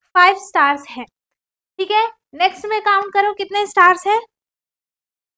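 A young woman speaks clearly and with animation, close to a microphone.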